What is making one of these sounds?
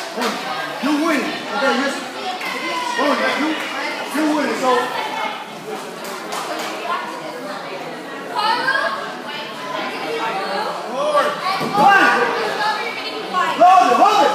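A crowd of adults and children shouts and cheers in an echoing hall.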